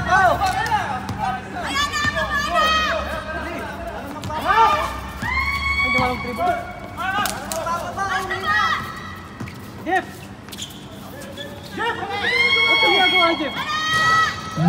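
Young men shout and call out to each other across an outdoor court.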